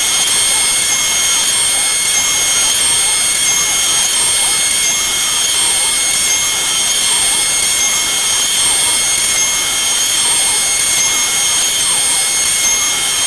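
A machine spindle whines steadily at high speed.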